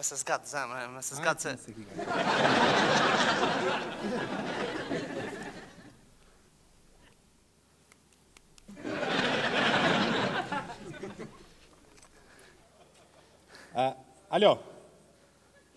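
A young man speaks through a microphone.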